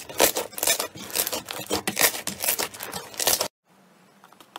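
Hands squeeze sticky slime, which crackles and pops.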